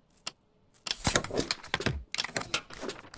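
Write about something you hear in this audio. A stamp thumps down twice on paper.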